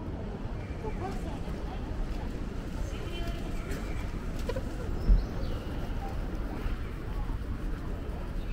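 Footsteps tap on paving stones outdoors.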